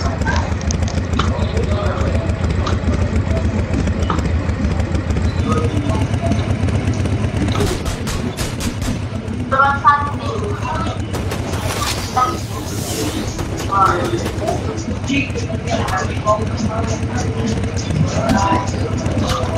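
A motorbike engine idles with a low steady rumble.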